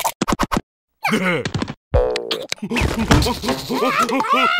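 A small cartoon creature babbles and yelps excitedly.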